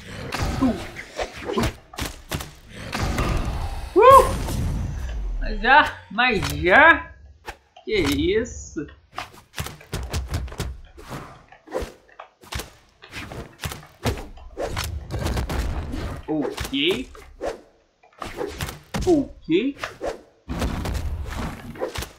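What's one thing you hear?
Blows land with sharp hits and whooshes.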